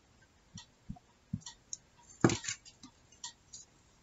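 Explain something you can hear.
Small pliers click shut on a piece of paper.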